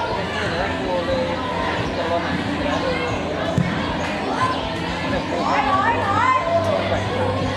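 Young boys shout and call out to each other outdoors.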